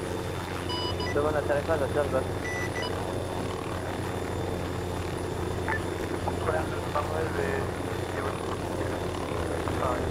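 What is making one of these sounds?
A man talks casually into a microphone.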